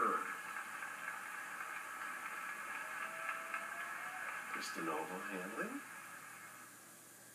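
A crowd cheers and applauds, heard through a television speaker.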